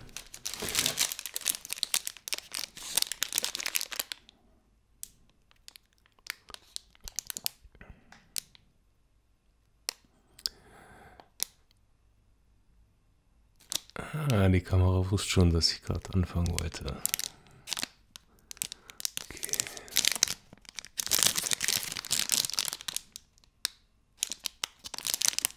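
A plastic wrapper crinkles and rustles in someone's hands.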